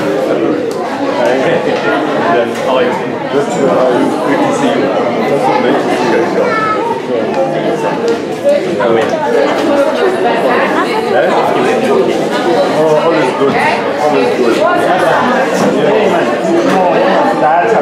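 Children chatter and talk over one another close by.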